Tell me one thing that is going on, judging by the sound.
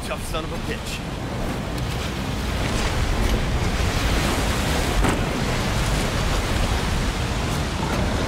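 Water rushes and splashes loudly against a speeding boat.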